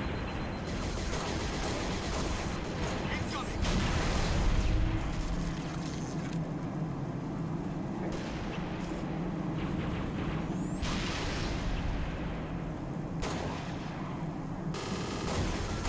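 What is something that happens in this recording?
Rifle shots crack sharply now and then.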